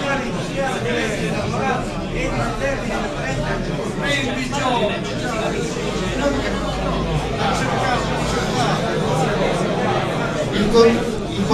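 Several men talk over one another nearby.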